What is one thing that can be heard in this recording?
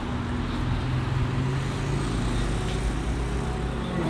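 A motor scooter rides past.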